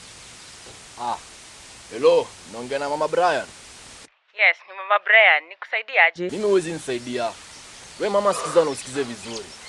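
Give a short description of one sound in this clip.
A young man talks on a phone, close by.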